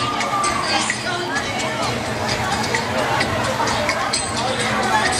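A crowd of children and adults chatter and shout nearby, outdoors.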